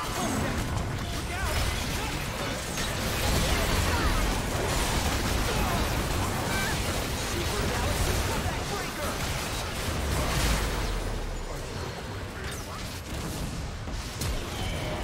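Magic spells crackle and burst in a fast, chaotic battle.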